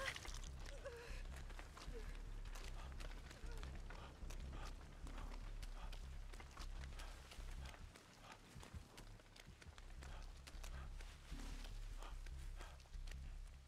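Quick footsteps run over rough ground.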